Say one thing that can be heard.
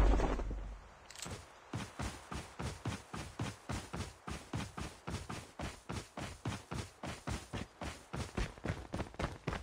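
Boots thud in quick, even footsteps as a soldier runs.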